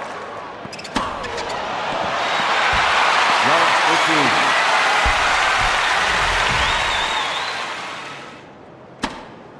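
A crowd cheers and applauds loudly, then fades.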